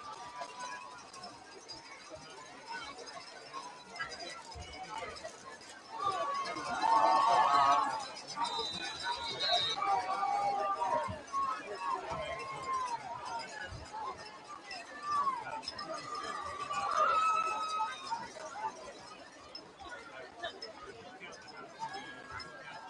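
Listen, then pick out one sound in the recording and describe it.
A crowd of people murmurs and shouts outdoors.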